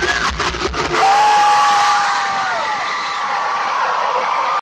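A crowd of young fans screams and cheers loudly.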